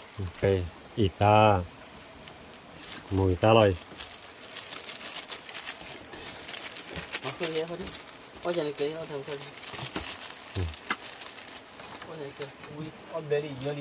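A plastic bag rustles as spices are poured out.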